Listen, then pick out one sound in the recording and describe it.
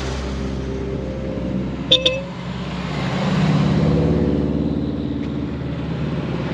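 A car engine rumbles loudly as a car drives past close by.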